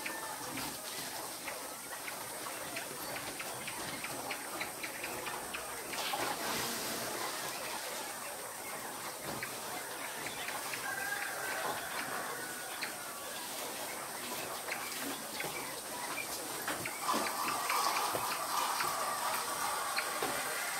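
Wire cages rattle and clank as a person handles them.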